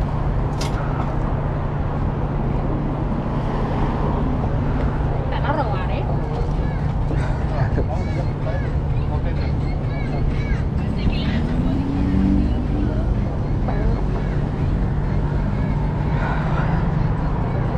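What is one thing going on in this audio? A low engine hums steadily nearby.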